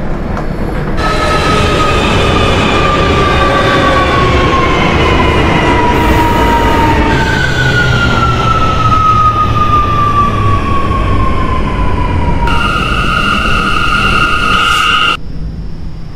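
An electric train motor whines and slowly drops in pitch as the train slows.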